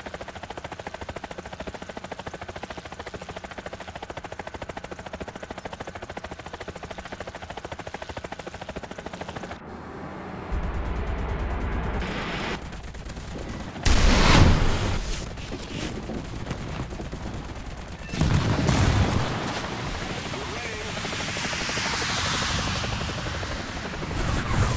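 A helicopter's rotor thumps steadily.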